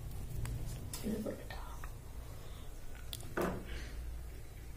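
A young woman speaks briefly and softly nearby.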